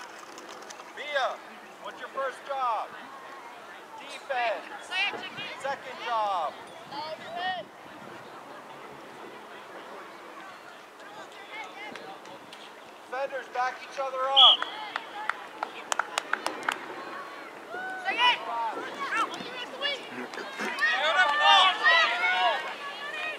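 Spectators shout and cheer from the sidelines of an outdoor field.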